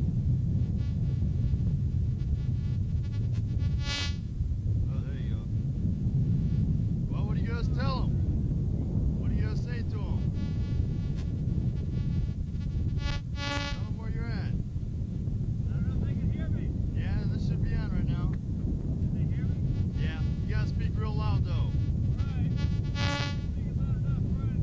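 Wind blows steadily across an open space outdoors.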